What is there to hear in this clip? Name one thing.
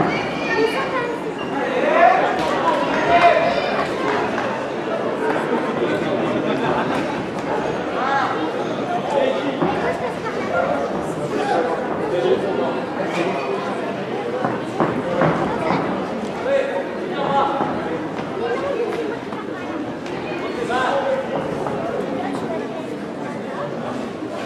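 A crowd shouts and cheers throughout a large echoing hall.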